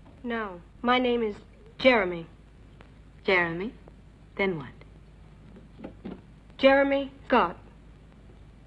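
A boy speaks nearby in a questioning tone.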